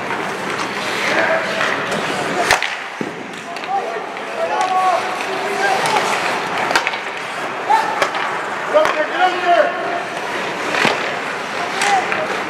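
Young men shout to each other across the ice.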